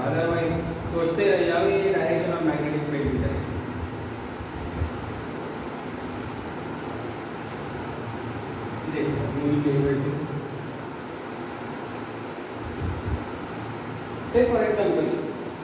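A man lectures with animation, close by.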